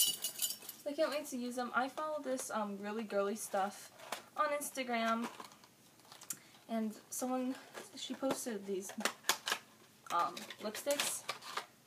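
Wrapping paper crinkles and rustles in hands.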